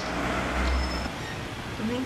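A middle-aged woman speaks quietly, close by.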